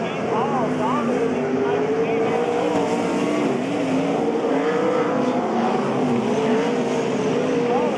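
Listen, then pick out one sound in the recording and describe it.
Racing car engines roar loudly.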